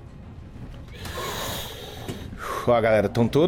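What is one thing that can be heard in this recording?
Smoke bursts out with a soft rushing hiss.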